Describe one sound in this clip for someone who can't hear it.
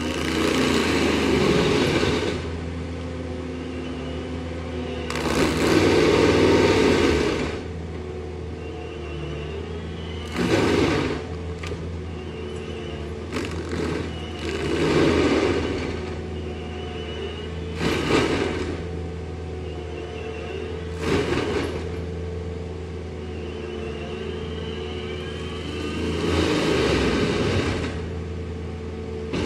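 A heavy engine drones steadily close by.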